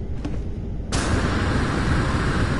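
A jetpack roars loudly with a rushing blast.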